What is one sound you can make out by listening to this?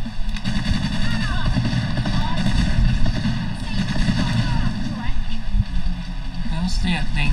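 Gunfire and explosions rumble loudly.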